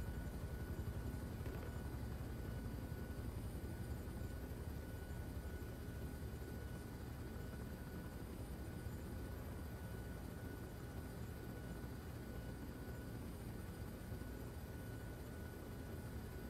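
A helicopter's rotor thumps loudly and steadily overhead.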